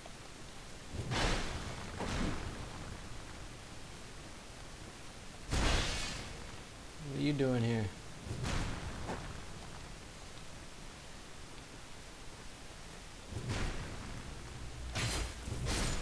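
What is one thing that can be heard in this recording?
A heavy sword swooshes through the air in swings.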